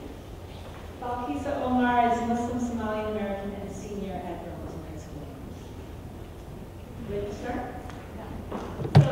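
A middle-aged woman speaks warmly into a microphone.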